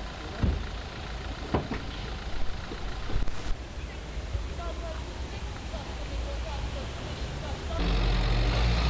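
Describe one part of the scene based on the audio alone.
Men talk in low voices outdoors.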